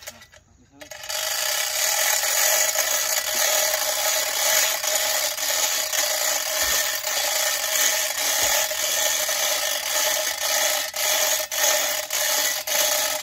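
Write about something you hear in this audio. A chain hoist rattles and clicks as its chain is pulled.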